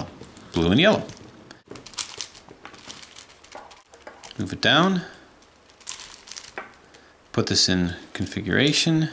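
Plastic puzzle pieces click and clack as they are twisted.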